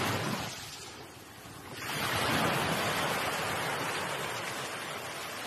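Waves crash and wash up onto a shore.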